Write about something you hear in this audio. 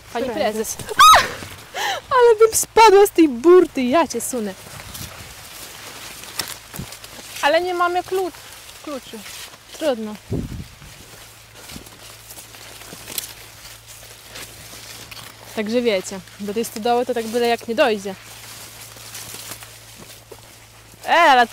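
Tall dry leaves rustle and brush against each other.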